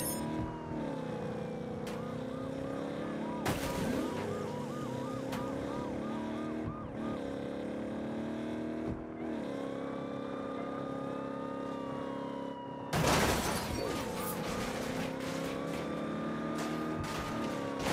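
A truck engine revs and roars steadily, rising and falling in pitch.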